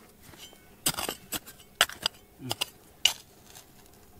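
A metal pick strikes into dry, stony dirt.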